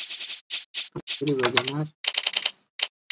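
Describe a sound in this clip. A man speaks briefly and calmly close to a microphone.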